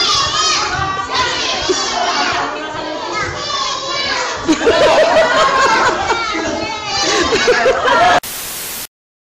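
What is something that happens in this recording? Young children shout and cheer nearby.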